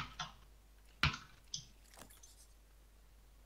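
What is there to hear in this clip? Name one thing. Short electronic clicks sound as items are picked up.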